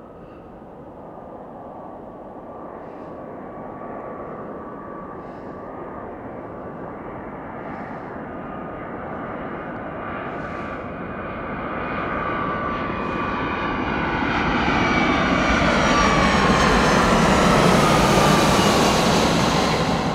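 A jet airliner's engines roar as it approaches and grows steadily louder overhead.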